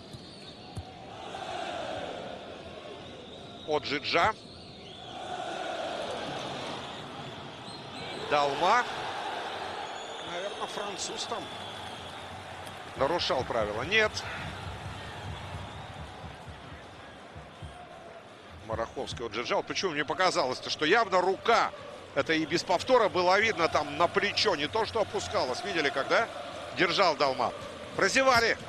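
A large stadium crowd roars and cheers, swelling and fading.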